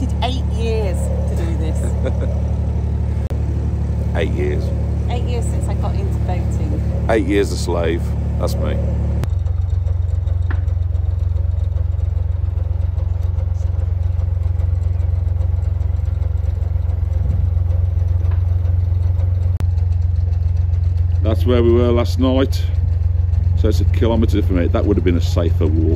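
A boat engine rumbles steadily.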